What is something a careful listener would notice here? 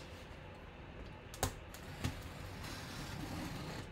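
A blade slices through plastic wrap on a cardboard box.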